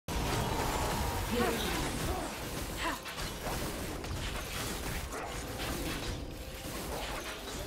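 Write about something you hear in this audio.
Game weapons strike with sharp hits.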